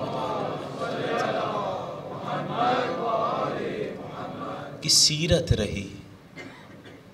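A man speaks with feeling into a microphone.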